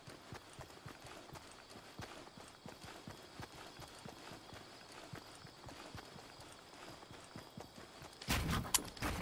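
Footsteps patter quickly over grass.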